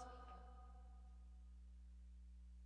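A keyboard note rings out and fades away.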